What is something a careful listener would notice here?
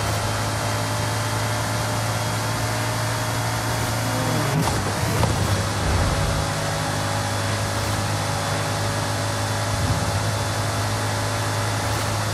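A sports car engine roars steadily at very high speed.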